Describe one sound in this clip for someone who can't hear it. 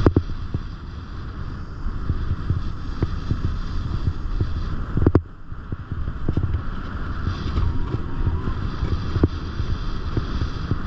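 Skis scrape and hiss steadily over hard snow.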